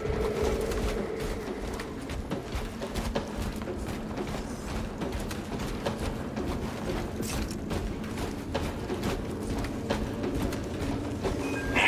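Heavy armoured footsteps thud and clank on soft ground.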